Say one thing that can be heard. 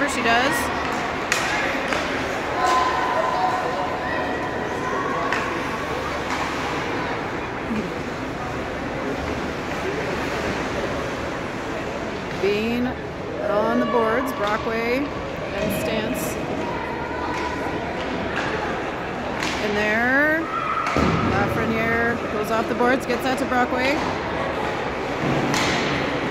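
Skates scrape across ice in an echoing rink.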